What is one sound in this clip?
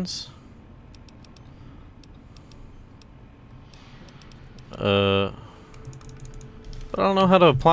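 Soft interface clicks tick quickly as a list scrolls.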